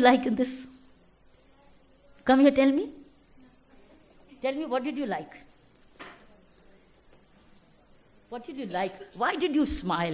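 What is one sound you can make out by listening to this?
A woman speaks slowly and deliberately through a microphone, with long pauses.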